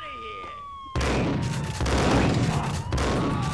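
Gunshots fire loudly in an echoing space.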